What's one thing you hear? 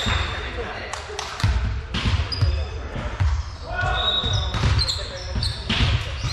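A volleyball thumps against hands and arms.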